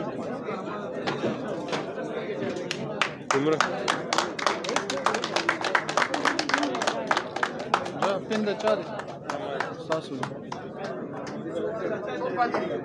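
Men talk among themselves in a crowded hall.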